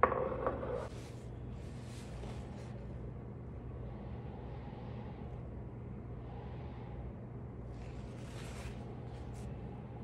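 A paper towel rustles and crinkles close by.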